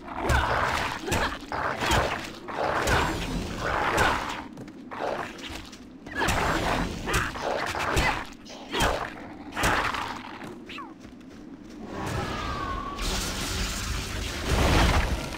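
Magic spells burst and whoosh.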